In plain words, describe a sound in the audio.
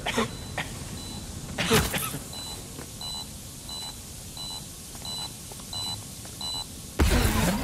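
An electronic device beeps in a steady, repeating pattern.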